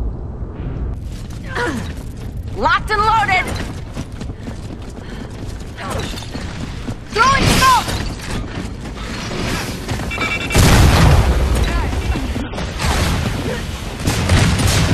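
Heavy footsteps thud quickly as a soldier runs.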